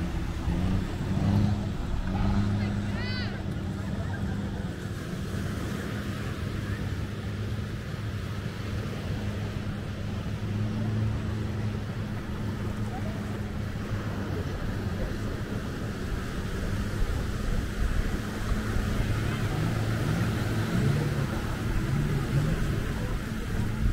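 Small waves lap gently against the shore.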